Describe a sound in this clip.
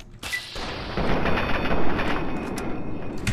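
A laser gun fires with a crackling zap.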